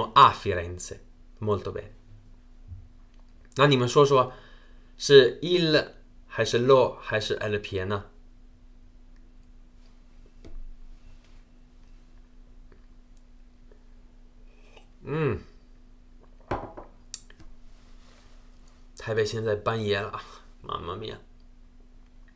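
A young man speaks calmly into a microphone, in short phrases with pauses.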